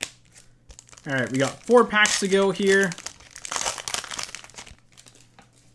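A foil wrapper crinkles as it is handled.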